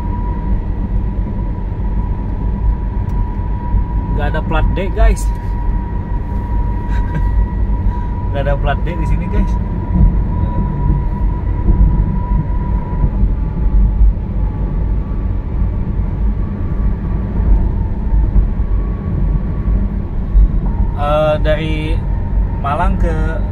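A car's engine and tyres rumble steadily on a smooth road, heard from inside.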